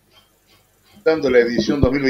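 A middle-aged man talks calmly into a microphone.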